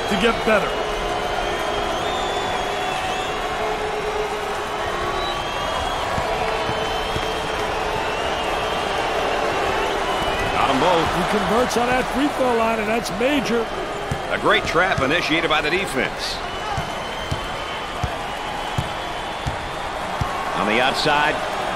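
A large crowd roars and murmurs steadily in an echoing arena.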